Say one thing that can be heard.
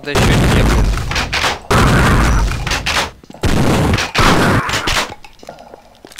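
A machine gun fires long, loud bursts.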